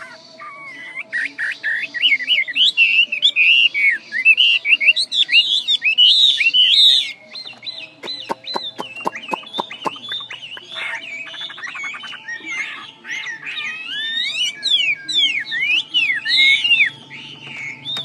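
A caged songbird sings loud, rapid, warbling phrases close by.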